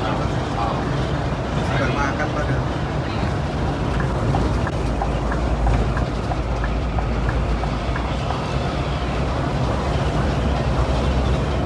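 Tyres roll on the road with a steady hiss.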